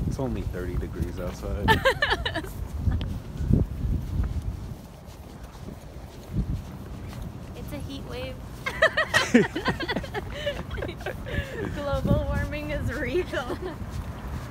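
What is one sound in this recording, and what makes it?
A young woman talks and laughs close by, outdoors.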